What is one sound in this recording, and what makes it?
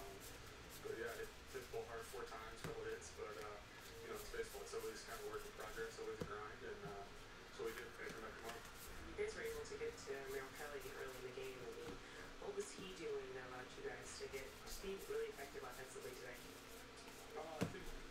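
Trading cards shuffle and slide against each other in hands.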